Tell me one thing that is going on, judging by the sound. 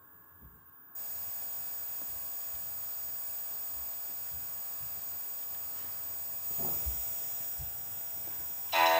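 An electronic device gives off a steady, thin electrical whine and hiss.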